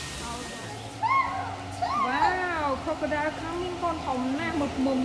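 Young children talk and squeal excitedly nearby.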